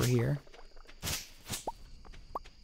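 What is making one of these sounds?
A scythe swishes through weeds.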